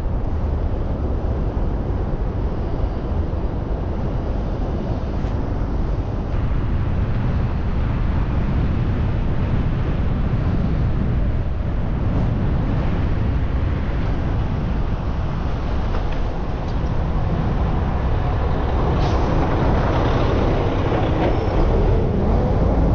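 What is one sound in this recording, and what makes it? Wind buffets the microphone with a steady low rumble.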